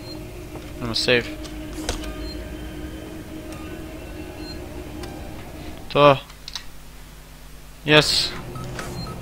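A switch clicks on a wall phone panel.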